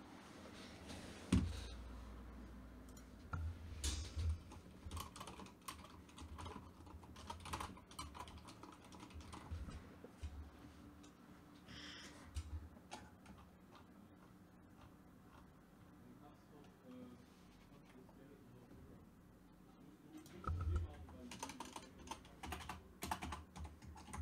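Computer keys and a mouse click in short bursts.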